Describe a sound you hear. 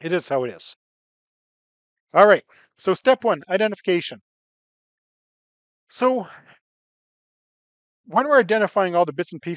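A man lectures calmly through a microphone, with pauses.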